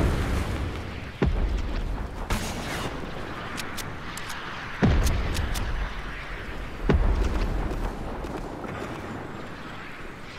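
Wooden walls are built with quick knocking thuds.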